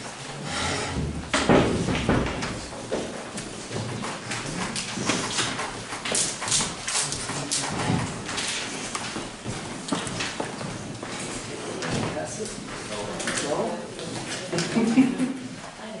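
A man speaks to a group.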